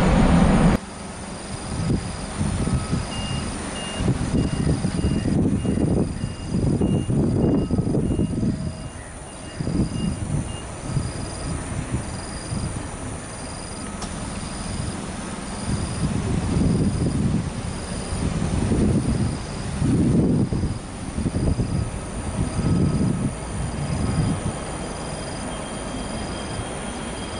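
A jet engine roars loudly as an airliner speeds down a runway and takes off.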